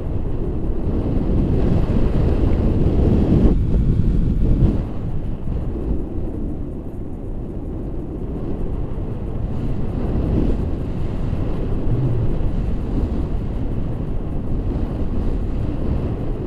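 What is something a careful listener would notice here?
Wind rushes loudly and steadily over the microphone.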